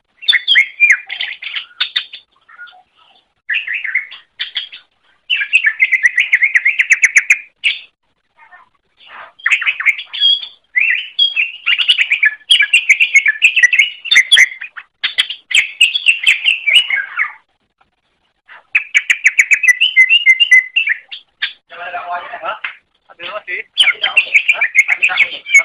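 A small songbird sings a fast, varied chattering song with short pauses.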